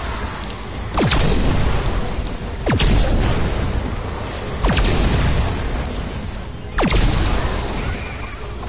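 Heavy explosions boom one after another, each with a falling whoosh.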